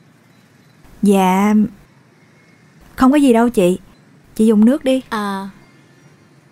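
Another young woman answers cheerfully and close by.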